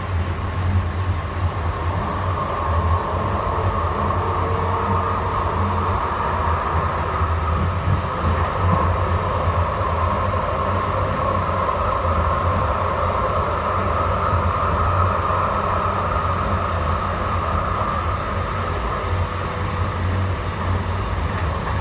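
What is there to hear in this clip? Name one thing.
A train's motor whines steadily.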